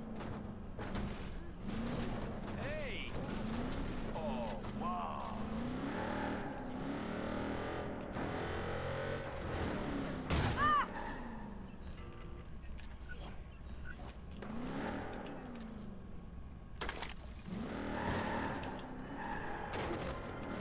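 A car engine revs and hums as the car drives.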